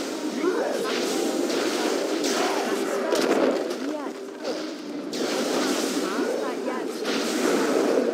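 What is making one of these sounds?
Electric spells crackle and zap in bursts.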